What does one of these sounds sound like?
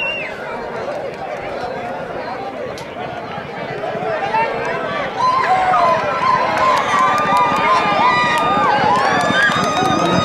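Men nearby shout and cheer excitedly.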